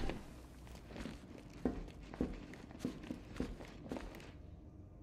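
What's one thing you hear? Heavy footsteps thud slowly on a hard floor.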